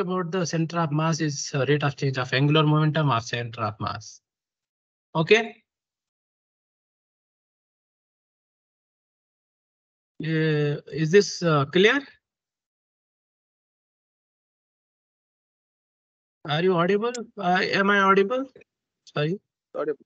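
A young man speaks calmly with pauses, heard through an online call.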